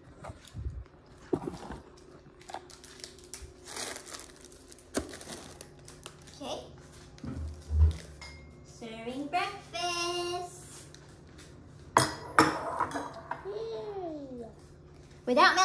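A wrapper crinkles and rustles.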